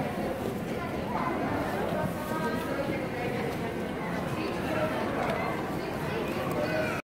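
A dense crowd chatters and murmurs all around in a busy echoing arcade.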